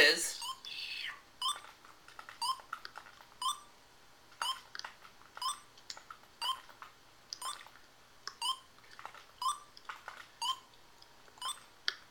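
Short electronic beeps sound in a steady, quick rhythm.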